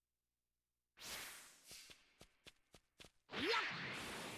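A character runs with quick footsteps.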